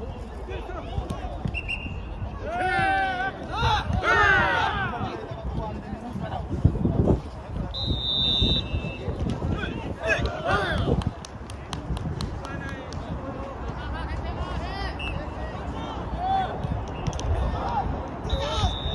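A ball thumps off a foot.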